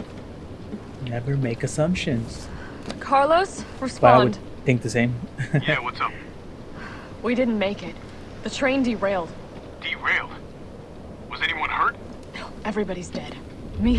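A young woman speaks urgently into a radio, close by.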